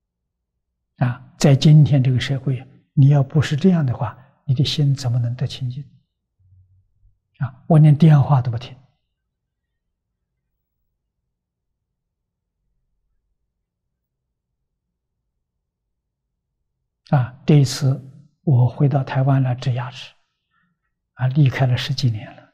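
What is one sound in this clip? An elderly man speaks calmly and closely into a microphone, in short phrases with long pauses.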